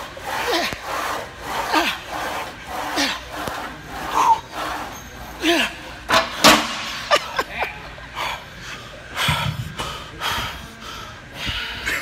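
A man groans with strain.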